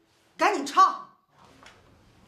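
A woman speaks urgently and briefly, close by.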